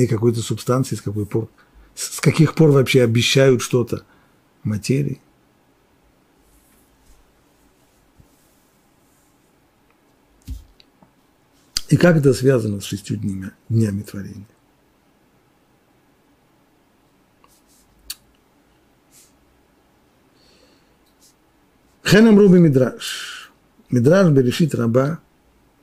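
An elderly man speaks calmly into a close microphone, with long pauses.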